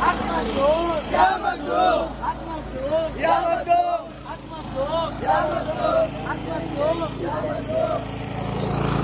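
A young man shouts with excitement close by.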